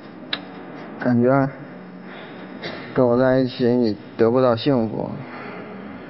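A man speaks with feeling through a microphone in a large hall.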